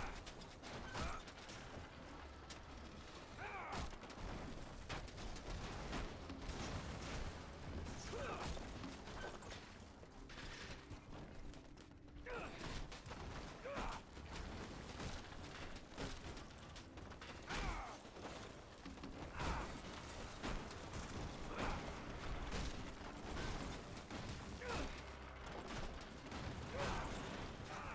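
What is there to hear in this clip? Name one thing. Loose debris clatters and tumbles down.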